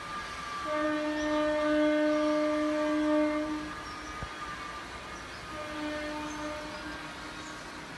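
A train horn sounds in the distance, a long blast and then a shorter one.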